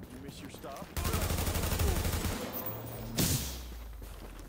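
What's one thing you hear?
A loud burst of gunfire rattles and booms.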